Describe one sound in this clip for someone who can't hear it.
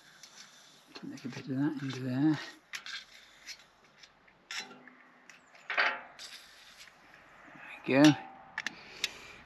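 An elderly man speaks quietly up close.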